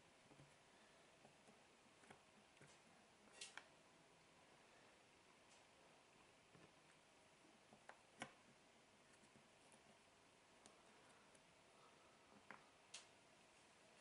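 Jigsaw puzzle pieces click and tap softly on a table.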